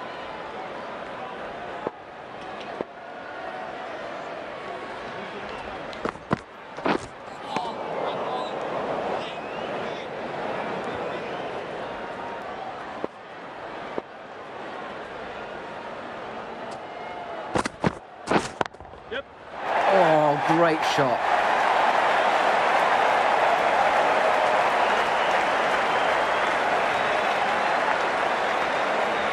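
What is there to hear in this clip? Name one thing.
A large stadium crowd murmurs and then cheers loudly.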